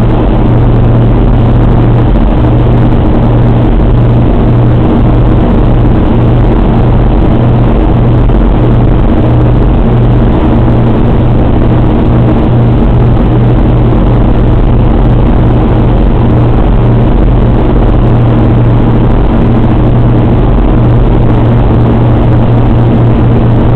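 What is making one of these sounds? The radial piston engines of a four-engine bomber drone loudly, heard from inside the fuselage.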